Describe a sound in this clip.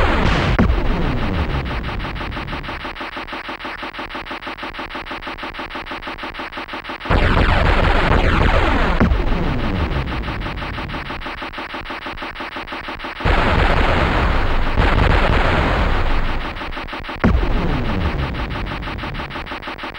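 A helicopter's rotor chops in rapid rhythm.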